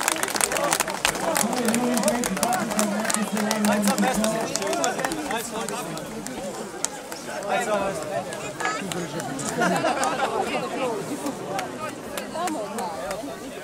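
A crowd of people shouts and cheers close by.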